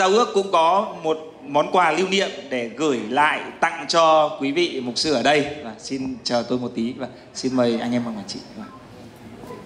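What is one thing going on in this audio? A man speaks into a microphone over loudspeakers in a large echoing room.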